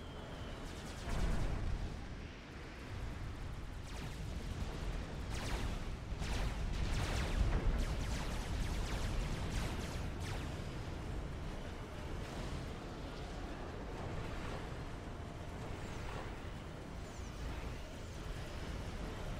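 Explosions boom and rumble in a game battle.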